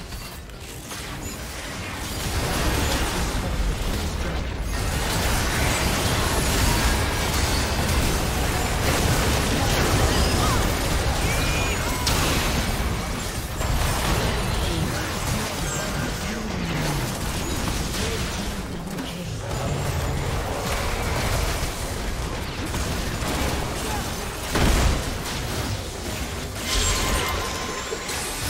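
Magic blasts, explosions and clashing weapons of a fantasy battle crackle and boom continuously.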